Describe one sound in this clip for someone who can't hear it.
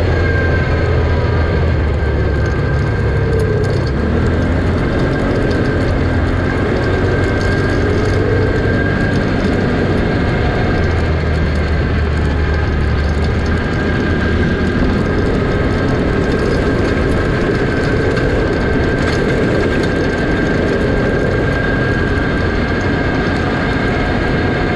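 A quad bike engine roars up close at speed.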